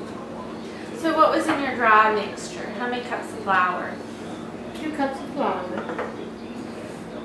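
An older woman talks calmly nearby.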